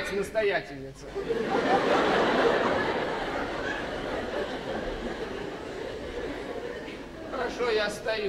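A theatre audience laughs and claps.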